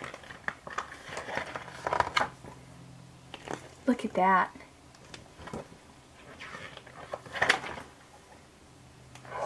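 Calendar pages rustle as they are flipped.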